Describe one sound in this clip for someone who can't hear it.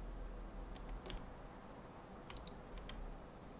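A game menu opens and closes with soft clicks.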